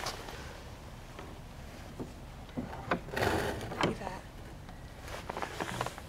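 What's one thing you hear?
A door handle rattles and clicks.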